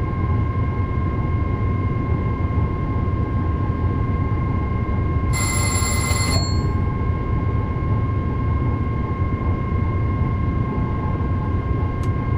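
An electric motor whines with a steady high hum.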